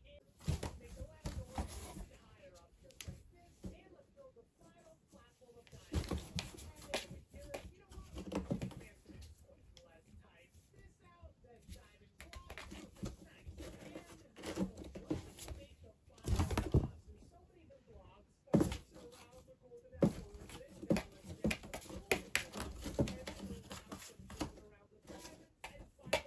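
Cats scuffle and paw at a cardboard box, which rustles and thumps.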